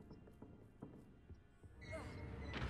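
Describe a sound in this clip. Footsteps tap softly on a wooden floor.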